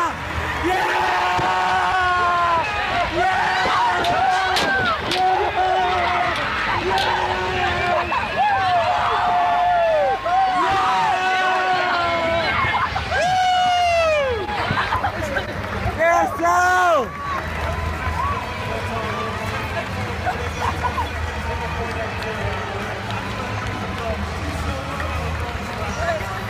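A large crowd cheers and roars in an echoing stadium.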